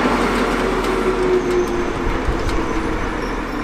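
Rail joints clack under the wheels of a locomotive.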